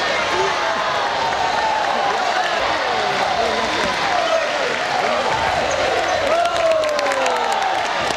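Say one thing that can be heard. Young spectators cheer after a point.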